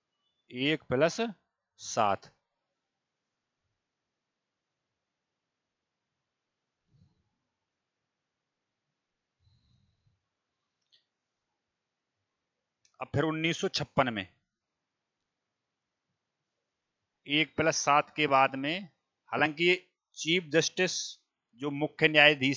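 A man speaks into a headset microphone, explaining in short bursts with long pauses.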